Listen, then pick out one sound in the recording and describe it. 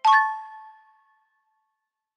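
A bright game chime rings and fades.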